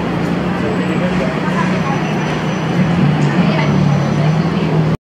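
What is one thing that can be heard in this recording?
A bus engine hums steadily from close by.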